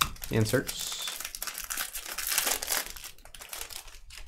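A foil wrapper crinkles and tears open close by.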